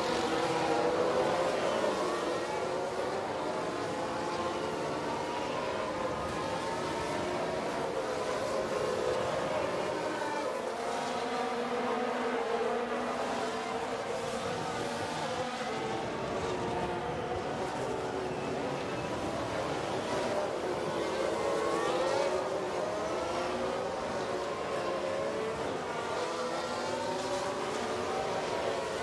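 Many racing car engines whine and rise and fall in pitch as the cars speed past.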